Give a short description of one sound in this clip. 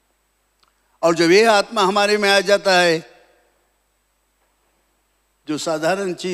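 An elderly man speaks forcefully into a microphone.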